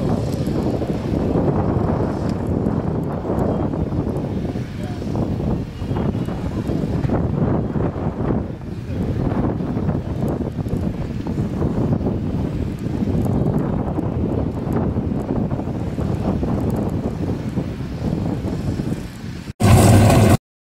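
A car engine roars loudly as a car launches and speeds away.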